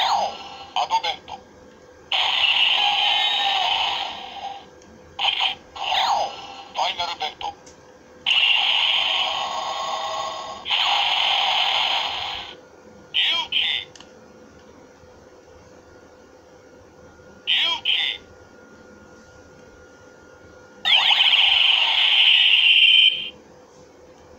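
A toy blaster plays loud electronic sound effects in bursts.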